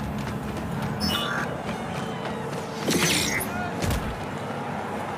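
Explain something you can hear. Bursts of electronic effects and impacts sound now and then.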